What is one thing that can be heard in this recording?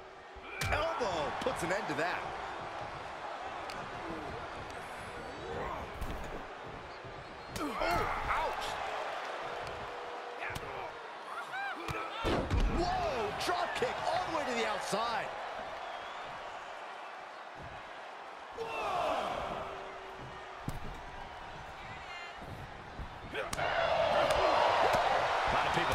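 Bodies thud heavily onto a wrestling ring's mat.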